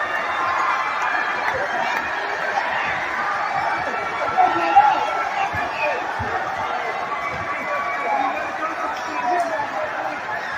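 Young men shout and whoop excitedly close by.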